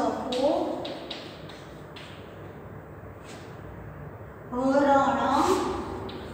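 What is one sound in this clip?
A woman speaks clearly, as if teaching, close by.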